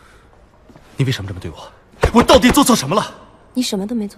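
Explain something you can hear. A young man speaks with distress, pleading.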